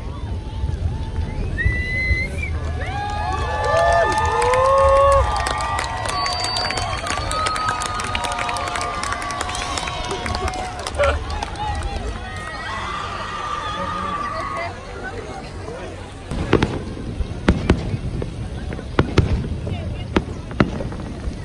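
Fireworks bang and boom loudly nearby.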